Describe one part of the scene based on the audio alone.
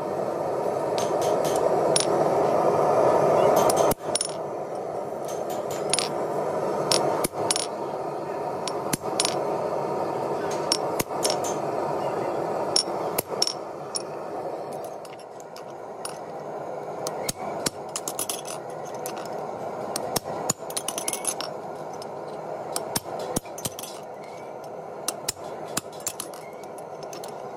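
A hammer rings sharply on metal on an anvil, blow after blow.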